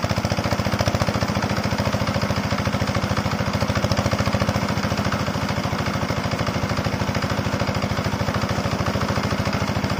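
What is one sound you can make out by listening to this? A diesel water pump engine chugs steadily and loudly nearby.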